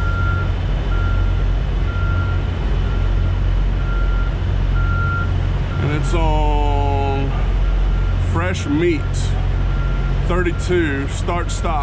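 A refrigeration unit engine hums steadily.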